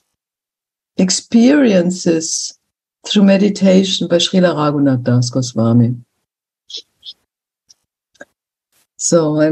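An elderly woman speaks calmly over an online call, with pauses.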